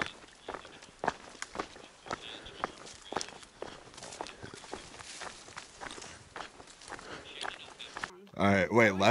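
Footsteps crunch along a dirt trail.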